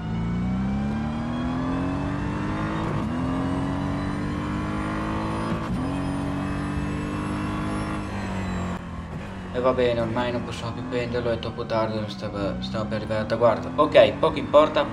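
A racing car engine revs up high, dropping briefly with each gear change.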